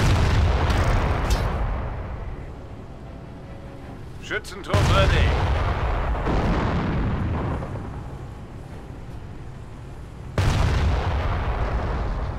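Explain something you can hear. Explosions boom and rumble in heavy bursts.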